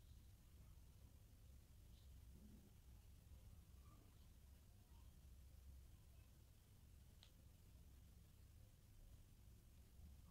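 Yarn rustles softly as hands crochet.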